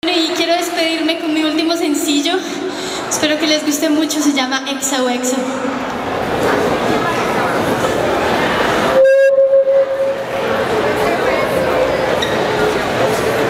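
Music plays loudly over loudspeakers.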